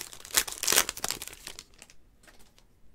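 A foil card wrapper crinkles and tears open close by.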